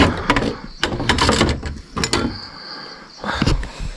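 A metal bolt rattles and clicks on a wooden door.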